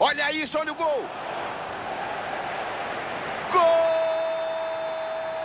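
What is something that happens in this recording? A stadium crowd cheers.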